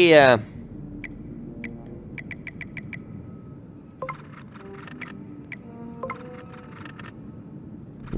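Soft electronic clicks and ticks sound.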